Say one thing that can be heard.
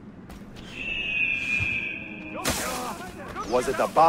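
A body lands with a thump in a pile of hay.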